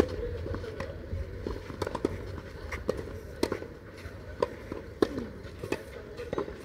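Tennis balls are struck sharply with rackets.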